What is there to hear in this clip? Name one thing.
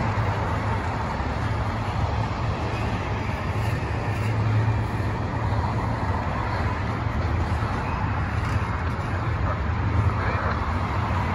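A freight train rumbles past close by, its wheels clattering steadily on the rails.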